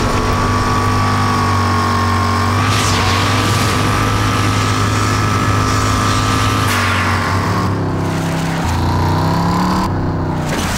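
A buggy engine roars steadily as it drives over rough ground.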